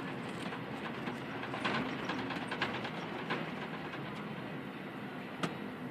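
A bus engine hums steadily from inside the moving bus.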